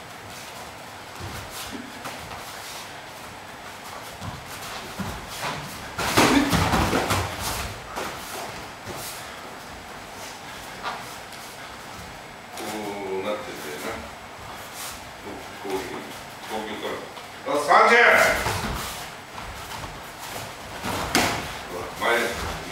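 Bare feet shuffle and slap on a padded floor.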